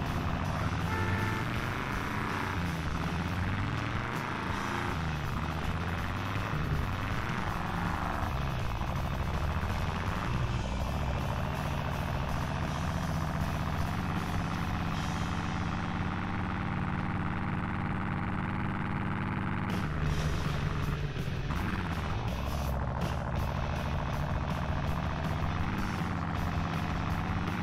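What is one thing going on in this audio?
A truck engine roars steadily as the truck climbs rough ground.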